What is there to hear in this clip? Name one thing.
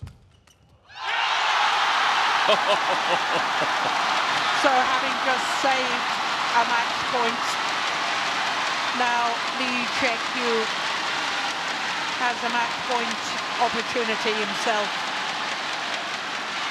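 A large crowd cheers and roars loudly.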